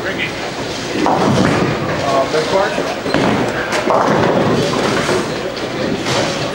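A bowling ball thuds onto a lane and rolls away with a low rumble.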